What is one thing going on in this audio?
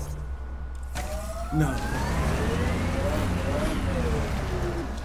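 A vehicle engine hums and revs up.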